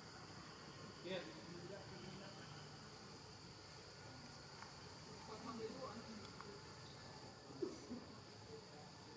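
A baby monkey squeaks and cries.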